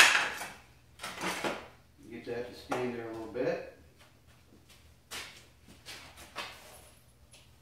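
A wooden frame knocks and clatters as it is handled.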